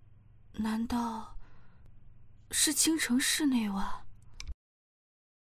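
A young woman speaks close by, tense and worried.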